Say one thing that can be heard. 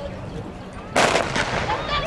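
A starting pistol fires once with a sharp crack.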